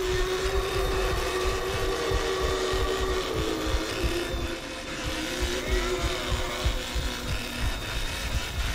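A chainsaw engine idles and revs steadily.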